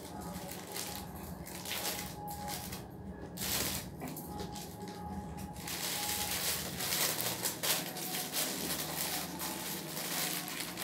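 A plastic package crinkles and rustles close by.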